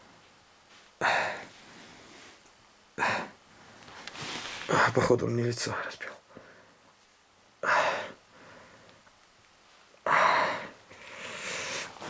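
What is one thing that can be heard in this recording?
A man breathes heavily and close by, in sharp bursts.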